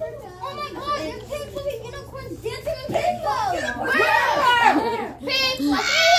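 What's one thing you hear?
Young girls chatter and talk excitedly close by.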